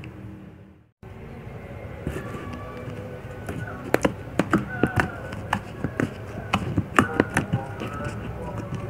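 Fingers squish and pop sticky slime.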